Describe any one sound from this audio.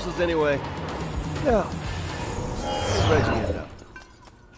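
A crackling energy blast whooshes and fades.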